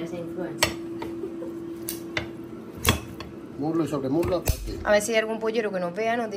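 Kitchen shears snip through cooked chicken bones.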